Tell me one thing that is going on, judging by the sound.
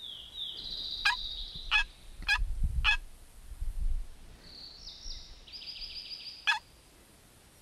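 A pistol clicks sharply as it is handled.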